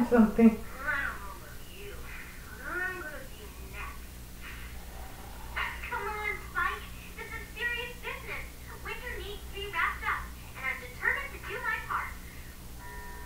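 A person talks close by.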